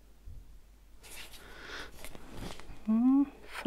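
Paper rustles as a page is handled.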